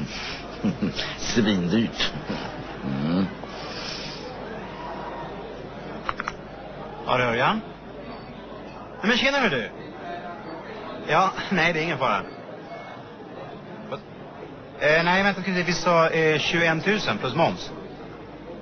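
An elderly man speaks, close by.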